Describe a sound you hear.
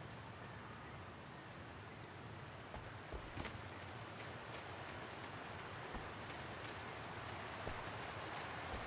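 Rushing water roars steadily nearby.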